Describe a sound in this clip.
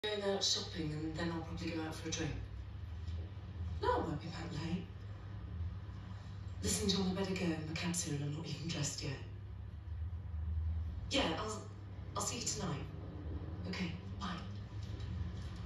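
A woman talks calmly on the phone, heard up close.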